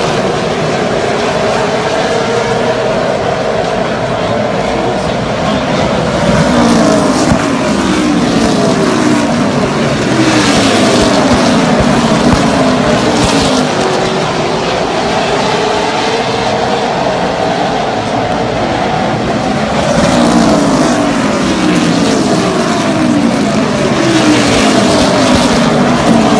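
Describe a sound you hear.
Race car engines roar loudly and rise and fall in pitch as the cars speed around a track.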